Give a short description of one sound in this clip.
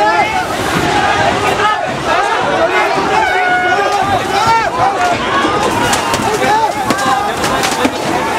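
A large crowd of men and women shouts and yells loudly outdoors.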